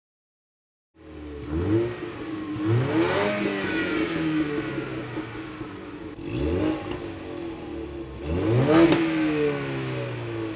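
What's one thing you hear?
A car engine idles with a deep exhaust rumble.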